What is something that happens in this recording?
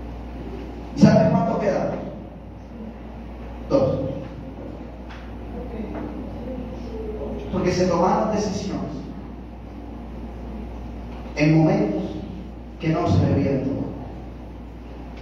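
A man preaches loudly into a microphone over loudspeakers in a large echoing hall, in bursts of speech.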